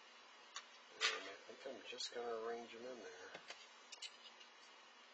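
Small metal parts rattle and click in a plastic tray.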